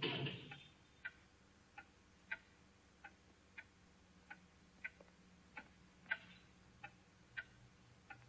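A pendulum wall clock ticks.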